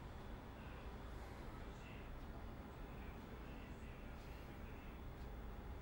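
A man speaks quietly into a microphone.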